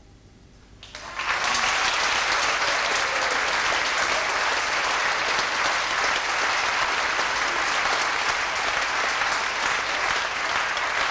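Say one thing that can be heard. An audience applauds loudly in a hall.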